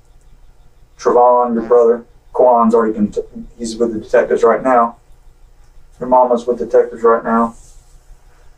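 A man speaks slowly in a muffled voice.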